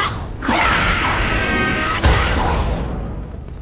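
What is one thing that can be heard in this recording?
A magical energy blast whooshes and roars.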